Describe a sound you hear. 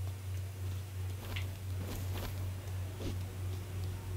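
Footsteps patter on pavement.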